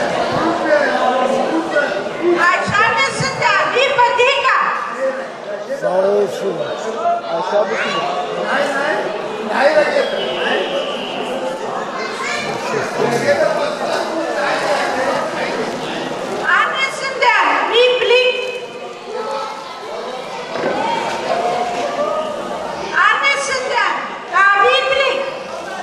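A middle-aged woman speaks loudly with animation into a microphone over a loudspeaker.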